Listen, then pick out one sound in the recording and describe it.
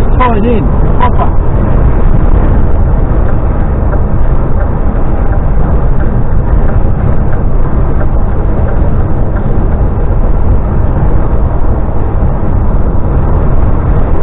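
A vehicle drives steadily along a motorway with a loud low rumble of road and wind noise.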